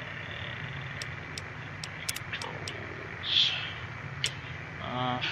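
Short menu clicks tick one after another.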